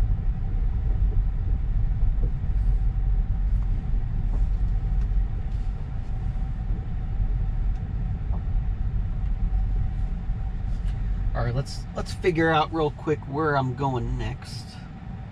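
A car rolls slowly over a bumpy grass track with a low rumble.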